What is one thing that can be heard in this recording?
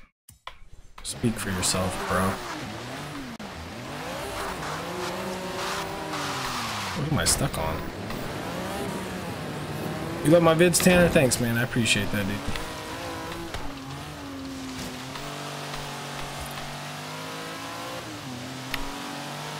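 A car engine revs and roars as the car speeds along a road.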